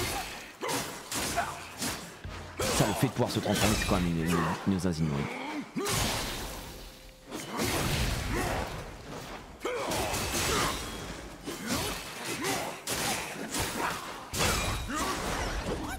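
Fiery sword strikes whoosh and crackle.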